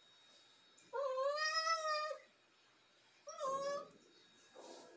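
A cat meows loudly, close by.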